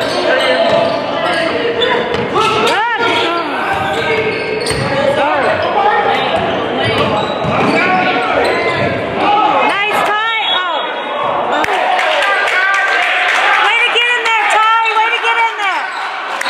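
Sneakers squeak sharply on a hardwood court in an echoing gym.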